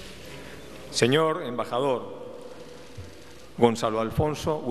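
A man speaks solemnly through a microphone in an echoing hall.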